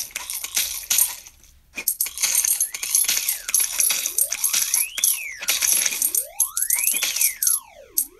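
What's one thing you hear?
A mobile game plays chiming, sparkling sound effects.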